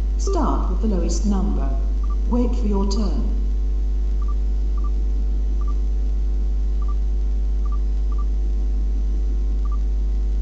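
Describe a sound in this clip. Short, soft electronic beeps sound now and then.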